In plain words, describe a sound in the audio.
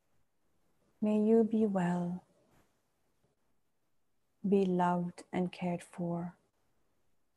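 A woman speaks slowly and calmly, close to a microphone, with long pauses.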